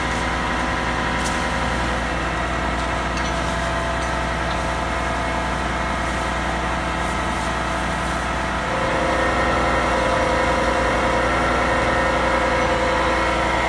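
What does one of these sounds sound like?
Water hisses from a fire hose spraying onto a fire.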